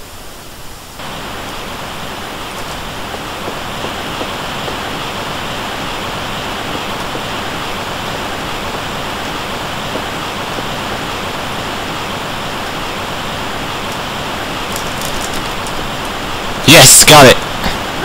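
A waterfall rushes and roars.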